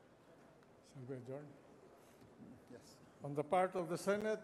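An elderly man speaks calmly into a microphone, heard over loudspeakers.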